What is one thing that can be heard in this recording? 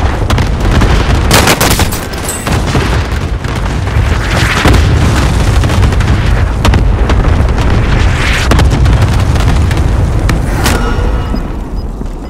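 Explosions boom and rumble loudly.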